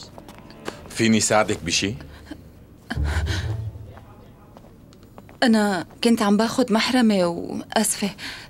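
A young woman speaks sharply and with animation, close by.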